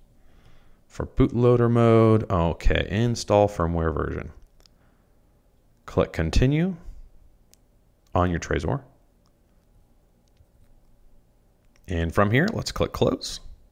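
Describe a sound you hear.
A man talks calmly and closely into a microphone, in short bursts.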